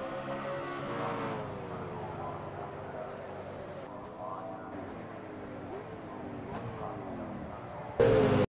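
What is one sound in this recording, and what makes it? V8 racing car engines roar, accelerating through the gears.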